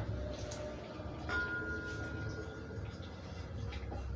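Liquid pours from a cup into a pot.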